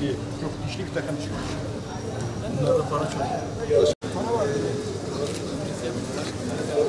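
Several men talk and greet each other nearby.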